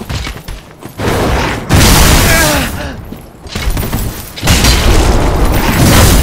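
An armoured warrior's axe strikes with sharp hits.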